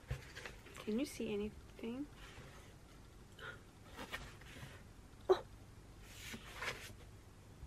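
Cardboard rustles as a box of books is handled.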